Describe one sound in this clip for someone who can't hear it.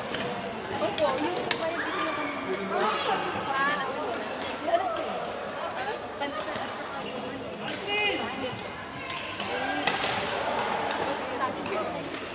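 Several adults chat and call out across an echoing hall.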